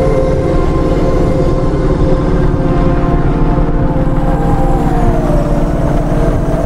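A futuristic vehicle engine's whine slides down in pitch.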